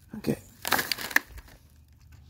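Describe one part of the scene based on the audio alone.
Paper and plastic packaging rustle and crinkle as they are dropped into a bin.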